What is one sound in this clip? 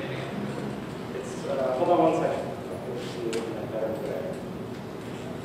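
A young man speaks calmly into a microphone in an echoing hall.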